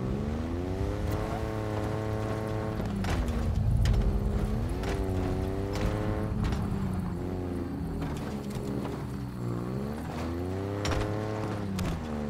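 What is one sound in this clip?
A vehicle bumps and rattles over rough ground.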